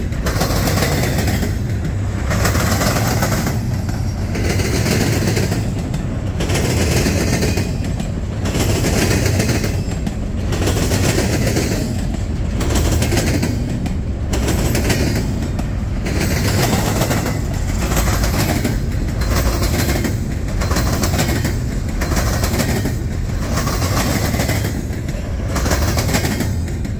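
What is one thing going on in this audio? A long freight train rumbles past close by, its wheels clacking rhythmically over the rail joints.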